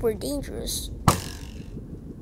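An arrow is shot from a bow with a sharp twang.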